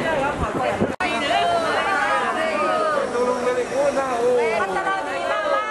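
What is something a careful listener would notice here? Several women speak and cheer together close by.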